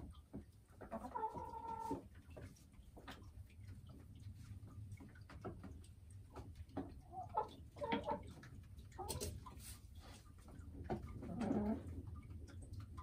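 A hen clucks and croons softly close by.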